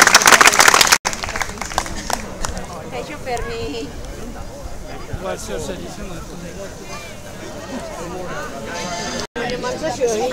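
A crowd of men and women chatters and murmurs nearby outdoors.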